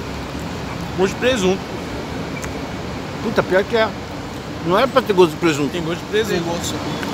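A middle-aged man speaks close by in short, lively bursts.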